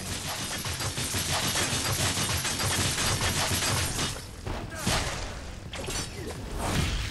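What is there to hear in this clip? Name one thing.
Blades swing and strike with sharp whooshing impacts.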